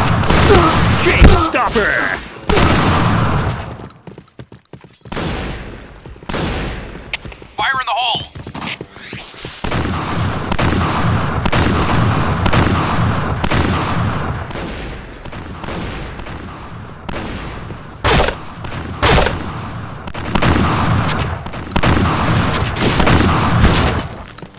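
Shotgun blasts boom in quick succession.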